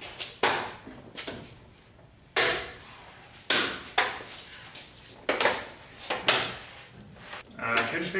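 Metal parts clank and knock as they are handled.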